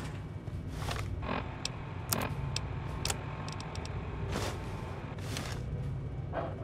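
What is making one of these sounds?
Electronic menu clicks and beeps tick several times.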